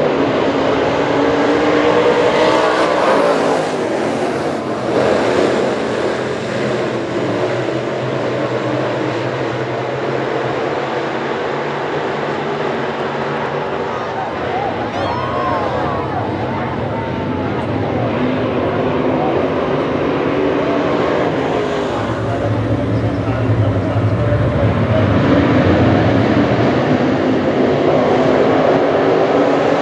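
A pack of race car engines roars loudly around a dirt track outdoors.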